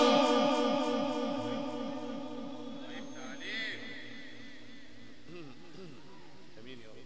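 An elderly man chants in a long, drawn-out voice through a microphone, with an echo that slowly fades.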